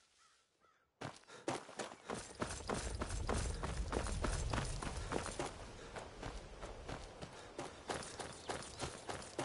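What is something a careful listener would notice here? Footsteps crunch over stones and dry grass at a steady walking pace.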